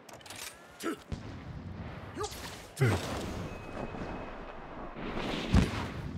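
Wind blows hard through a snowstorm.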